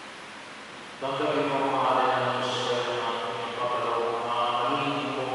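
A man sings a chant through a microphone in a large echoing space.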